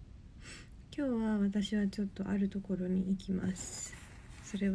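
A young woman speaks softly and tearfully, close by.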